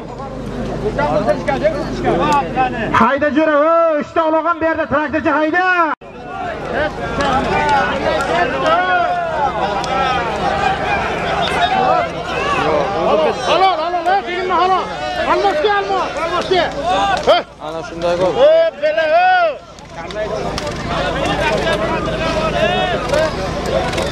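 Men in a large crowd shout with excitement outdoors.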